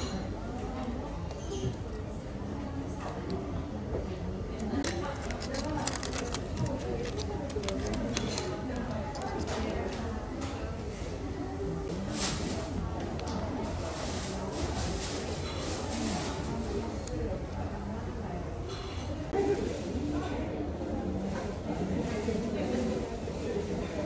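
A metal spoon scrapes and clinks against a plate.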